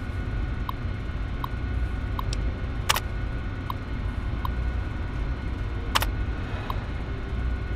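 A computer terminal gives short beeps and clicks.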